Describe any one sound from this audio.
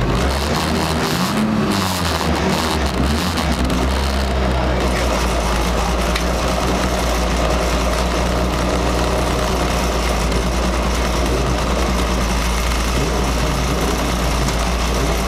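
A sports car engine ahead burbles and revs.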